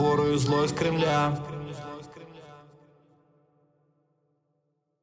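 A young girl sings, then the singing fades away into silence.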